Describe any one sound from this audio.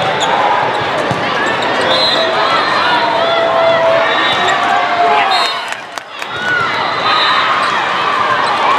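A volleyball is struck with a hollow thump.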